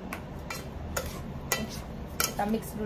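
Hands squish and mix soft rice.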